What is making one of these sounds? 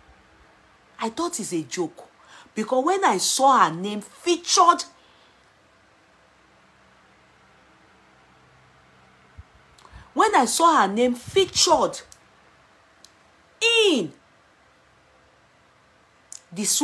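A woman speaks with animation, close to a microphone, in short bursts.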